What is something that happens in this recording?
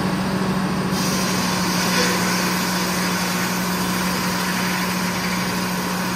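A large circular saw whines as it cuts through a log.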